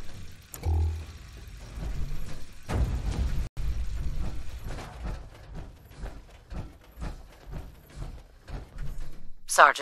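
Heavy armoured footsteps clank on a hard floor.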